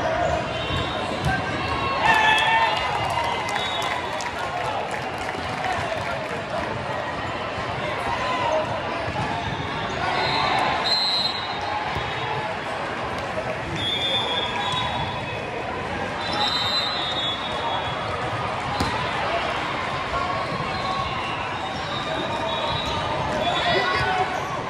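A large crowd chatters throughout a big echoing hall.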